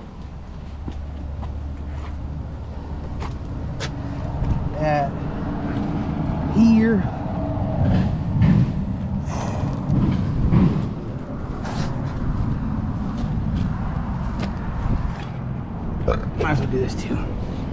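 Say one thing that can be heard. A microfiber wash mitt wipes over soapy paint on a truck.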